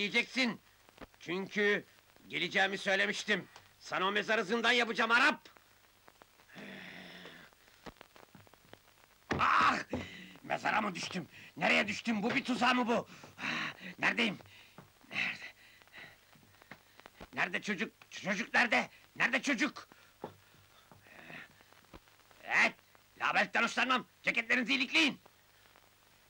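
Adult men talk in turns, close by.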